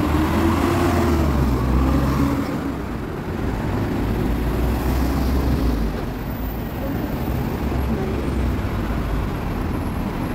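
A bus engine drones deeply close by.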